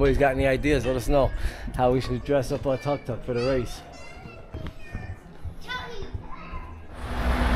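A middle-aged man talks with animation close to a microphone.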